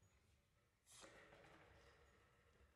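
A piano starts playing in a large hall.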